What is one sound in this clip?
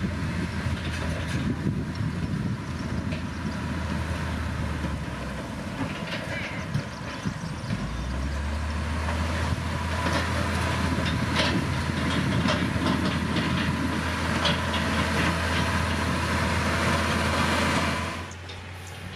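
Dirt and gravel crunch and scrape under a grader's blade.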